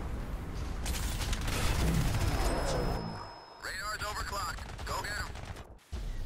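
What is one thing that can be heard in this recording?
A gun fires in a video game.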